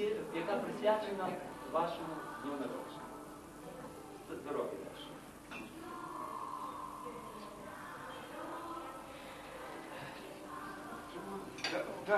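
An elderly man gives a toast, speaking loudly to a room.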